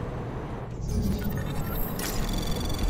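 Electronic tones beep and chirp.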